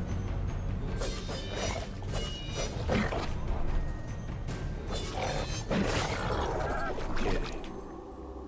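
Blades slash and clang in a fast fight.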